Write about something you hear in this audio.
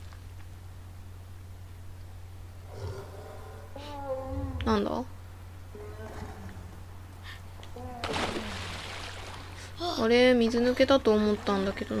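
Water splashes as someone swims.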